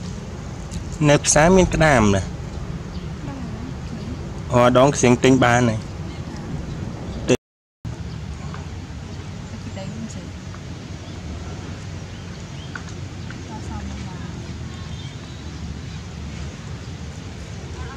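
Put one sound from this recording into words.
A monkey chews a soft banana.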